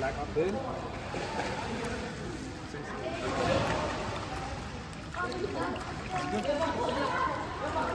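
Water splashes as a leg kicks through it.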